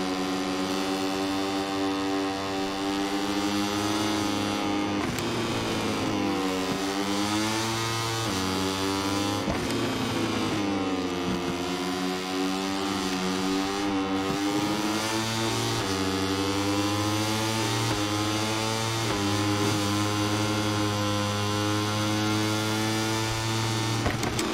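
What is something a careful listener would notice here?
A motorcycle engine roars loudly, its pitch rising and falling with gear shifts.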